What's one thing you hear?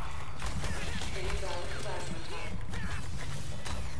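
Sword slashes swish and clash in quick bursts.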